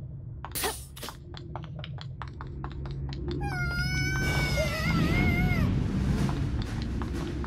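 Quick light footsteps patter as a small figure runs.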